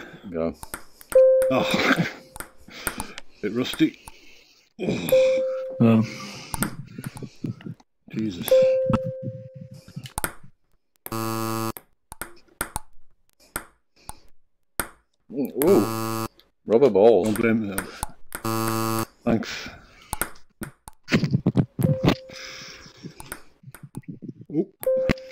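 A ping-pong ball clicks back and forth against paddles and a table.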